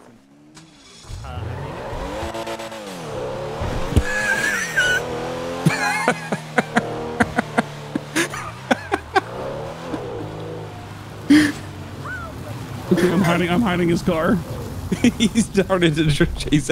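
A sports car engine starts and revs, rising and falling as the car speeds up and slows down.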